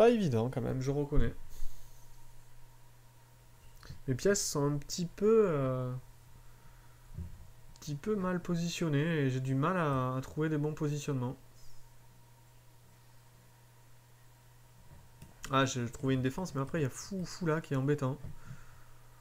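A man talks calmly and thoughtfully into a nearby microphone, with pauses.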